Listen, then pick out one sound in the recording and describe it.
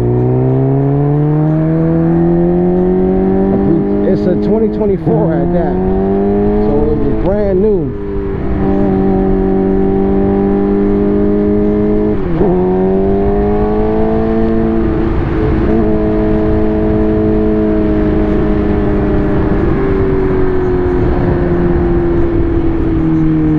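A motorcycle engine revs up and drops as it shifts gears.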